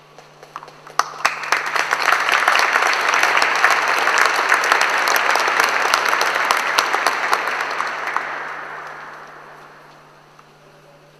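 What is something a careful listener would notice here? An audience applauds in a large echoing hall, swelling and then fading away.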